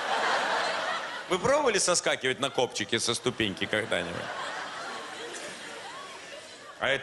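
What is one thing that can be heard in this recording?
An audience laughs together.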